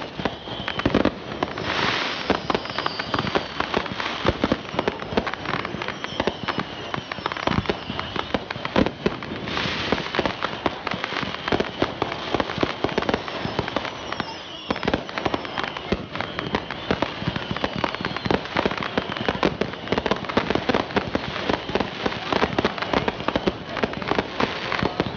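Rockets whistle and hiss as they shoot up.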